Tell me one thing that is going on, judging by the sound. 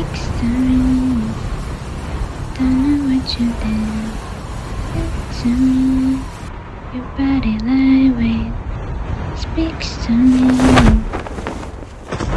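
Wind rushes steadily past a gliding figure.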